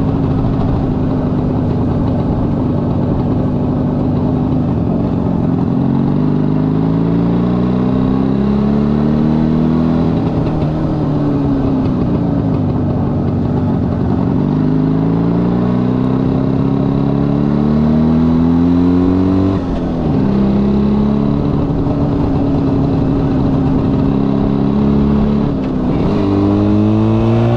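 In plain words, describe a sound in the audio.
A motorcycle engine roars close by, rising in pitch as it speeds up and dropping as gears change.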